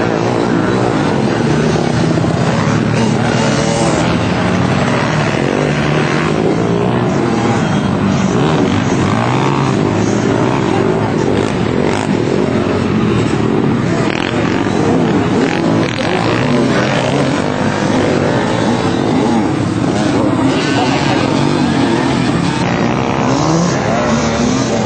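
Quad bike engines rev and whine loudly nearby.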